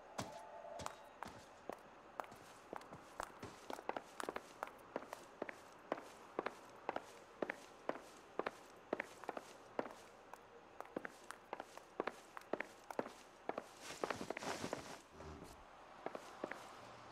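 Hard shoes walk steadily across a wooden floor.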